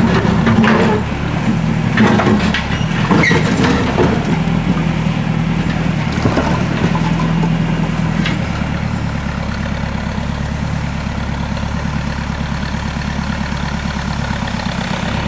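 A backhoe's diesel engine rumbles steadily close by.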